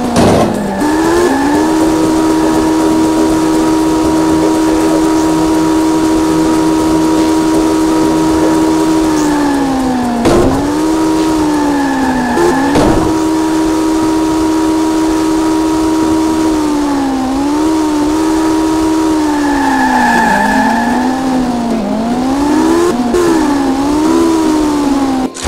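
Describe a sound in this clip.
A car engine hums steadily, its pitch dropping and rising as it slows and speeds up.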